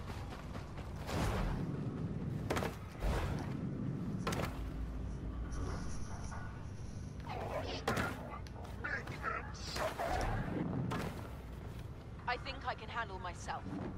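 Blaster shots fire in sharp bursts.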